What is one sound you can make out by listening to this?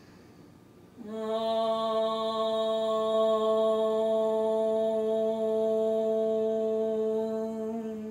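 A woman chants a long, steady note.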